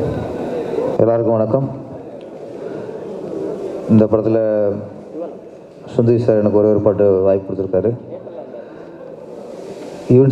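A man speaks with animation through a microphone over loudspeakers.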